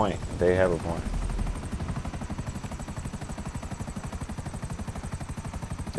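Helicopter rotor blades thump rapidly and steadily.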